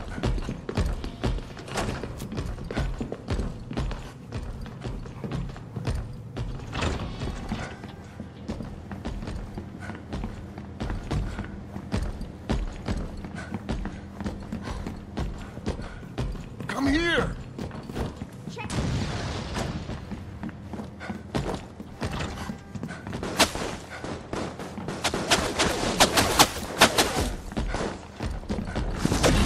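Quick footsteps tap across a hard floor.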